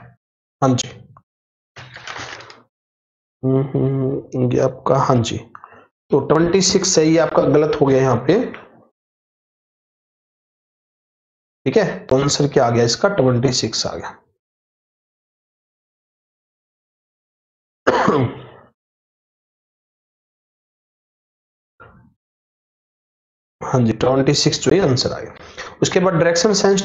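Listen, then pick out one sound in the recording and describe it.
A man speaks calmly and clearly into a close microphone, in bursts with pauses.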